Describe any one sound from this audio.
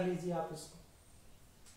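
A man speaks nearby, explaining calmly.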